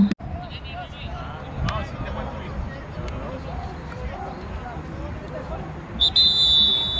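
A crowd of spectators and players shouts and chatters outdoors at a distance.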